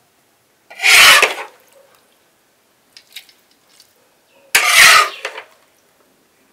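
A metal spatula scrapes cooked vegetables from a metal pan.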